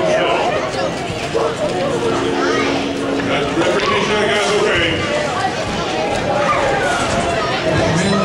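A crowd of people chatter and call out in a large echoing hall.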